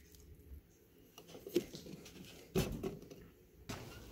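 A plastic lid clicks onto a mug.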